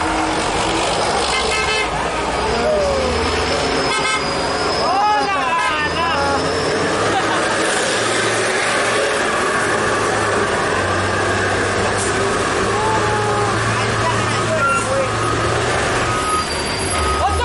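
A heavy truck engine rumbles and idles close by.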